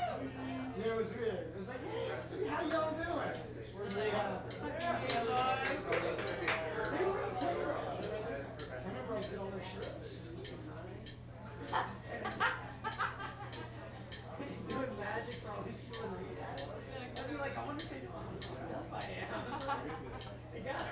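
A saxophone plays.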